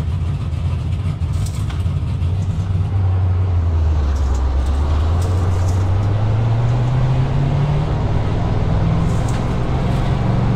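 A race car engine rumbles and slowly revs higher.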